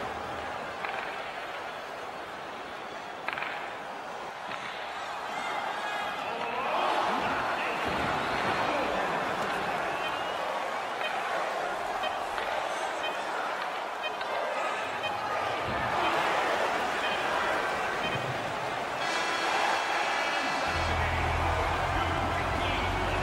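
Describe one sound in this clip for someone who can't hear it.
Skates scrape across ice.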